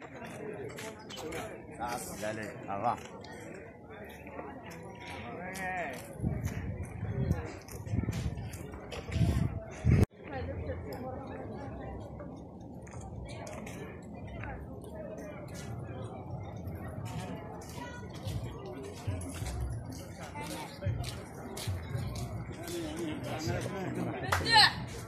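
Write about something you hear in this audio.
A crowd of people chatter in the background outdoors.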